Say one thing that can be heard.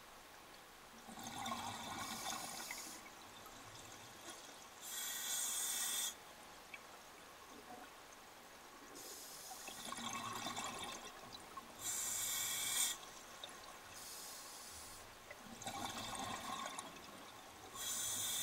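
A diver breathes in slowly through a regulator underwater.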